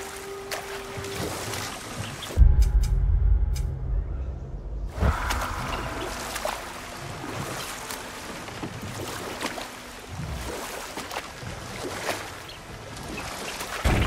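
Oars splash and paddle through water as a small boat glides along.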